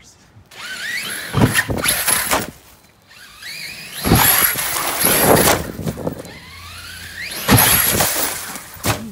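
A small electric motor whines, rising in pitch as a toy car speeds up, several times.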